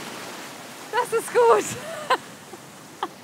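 A woman laughs and speaks cheerfully close by.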